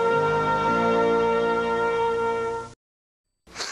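Brass music plays loudly and ends abruptly.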